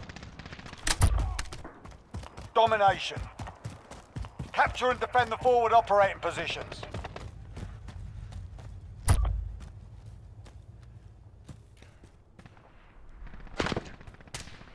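A shotgun fires with loud booming blasts.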